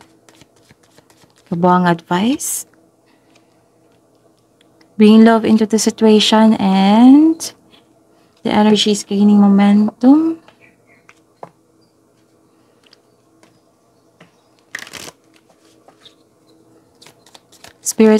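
A deck of playing cards rustles and flicks as it is shuffled.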